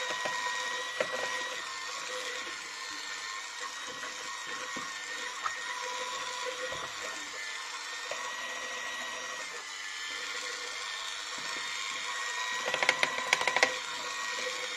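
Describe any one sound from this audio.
Mixer beaters clatter against a plastic bowl.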